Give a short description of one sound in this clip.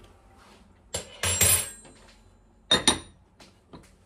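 A glass lid clinks onto a glass jar.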